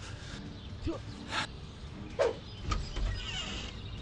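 A wooden door opens with a click.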